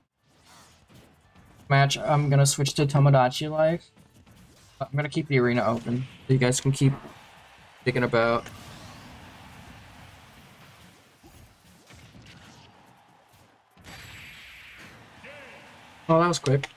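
Video game fighters trade punches and blasts.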